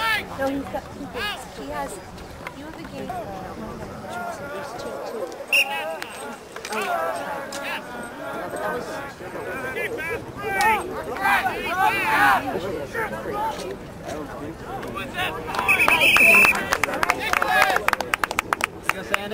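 Men and women on the sidelines shout and cheer outdoors.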